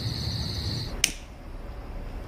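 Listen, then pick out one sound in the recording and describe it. A lighter clicks and flares.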